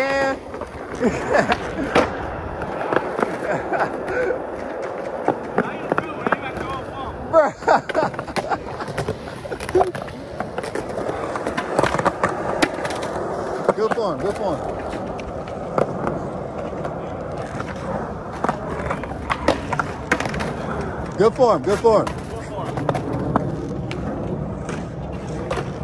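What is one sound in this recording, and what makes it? Skateboard decks clack and slap on the ground.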